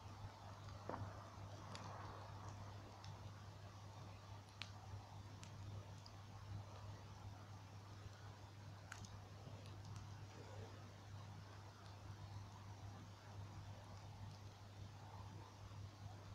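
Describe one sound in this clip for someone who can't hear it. Bonfire embers crackle and pop.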